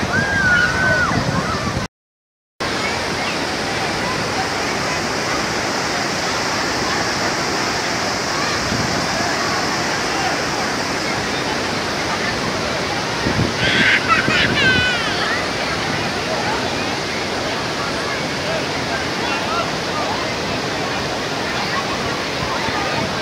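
Water rushes steadily over rocks.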